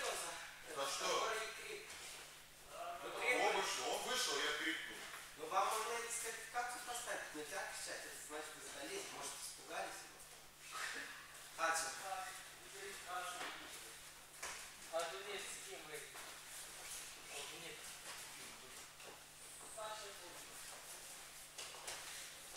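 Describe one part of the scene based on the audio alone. A man speaks calmly and at length in an echoing hall.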